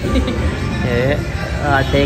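A boy laughs.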